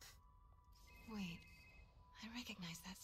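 A young woman speaks quietly to herself.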